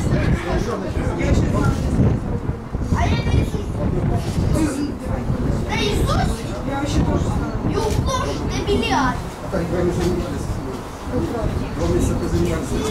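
A woman talks and laughs nearby.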